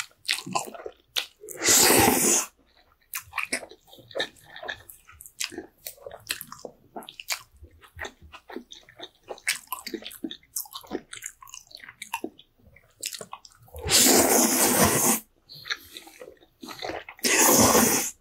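A man chews noodles with wet smacking sounds.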